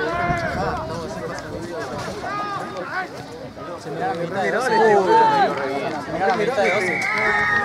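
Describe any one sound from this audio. Young men on the field shout to each other.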